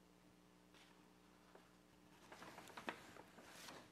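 A page of a book rustles as it turns.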